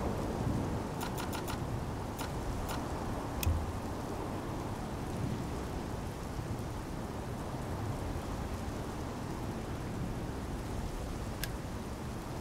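A few short, sharp clicks sound in quick succession.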